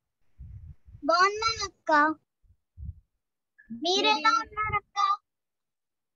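A young girl speaks through an online call.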